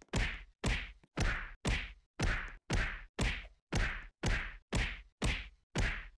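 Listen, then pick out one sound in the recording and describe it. A game character punches a training dummy with repeated quick thuds.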